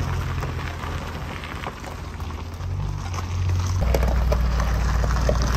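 Tyres crunch and pop over gravel.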